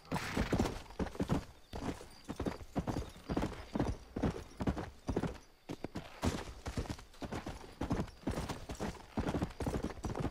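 Horse hooves pound rhythmically on a dirt trail at a gallop.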